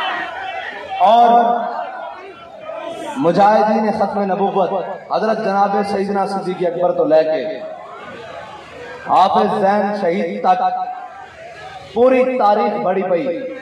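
A man speaks forcefully through loudspeakers.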